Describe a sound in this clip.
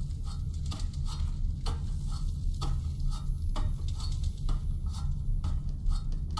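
Footsteps clank on metal ladder rungs in a steady climbing rhythm.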